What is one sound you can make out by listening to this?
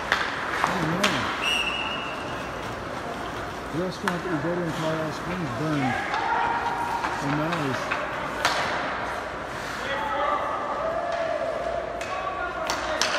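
Hockey sticks and pucks clack and knock against the ice.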